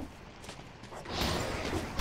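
A magical blast crackles and whooshes.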